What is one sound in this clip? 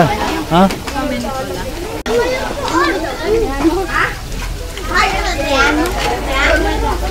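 Children and women chatter with animation close by.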